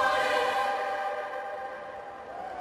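A choir holds a sung note that fades away.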